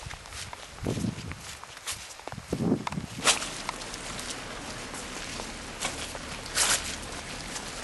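Footsteps crunch and splash on a wet road.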